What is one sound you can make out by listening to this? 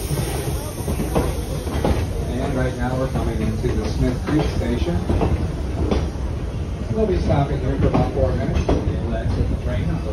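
People in passing train cars chatter.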